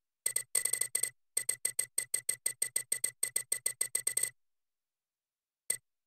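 Short electronic menu ticks click rapidly, one after another, then once more after a pause.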